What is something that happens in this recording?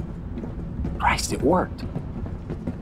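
A man speaks with relief.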